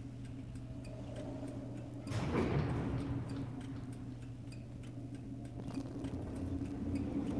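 A machine hums low and steadily.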